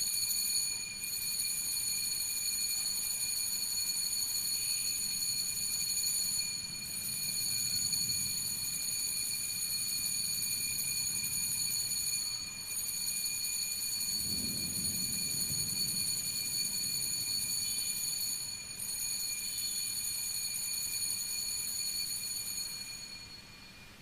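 Small hand bells ring on and on in shaking bursts.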